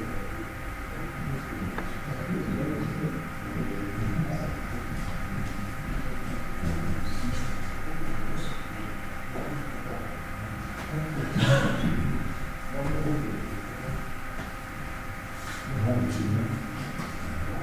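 Several adults talk quietly in the background.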